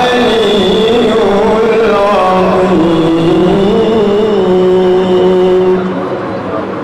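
A young man chants melodiously into a microphone, heard through loudspeakers.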